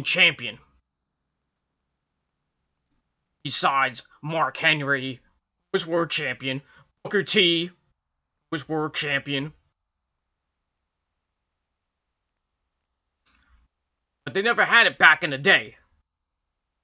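A man talks close to a microphone in short bursts with pauses.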